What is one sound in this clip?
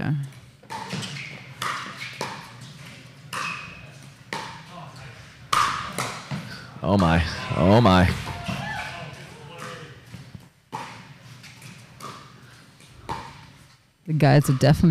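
Paddles strike a plastic ball back and forth in a quick rally.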